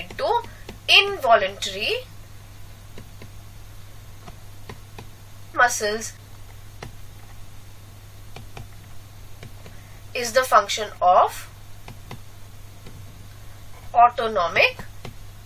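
A young woman speaks calmly through a microphone, in short phrases with pauses.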